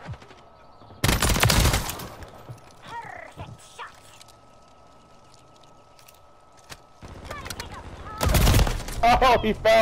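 A suppressed assault rifle fires bursts.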